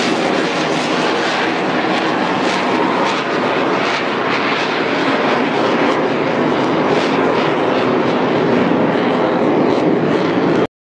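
Several aircraft roar overhead.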